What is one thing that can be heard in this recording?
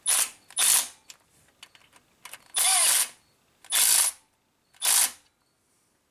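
A cordless impact wrench whirs in short, loud bursts close by.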